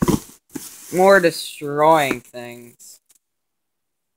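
Plastic bags rustle close by.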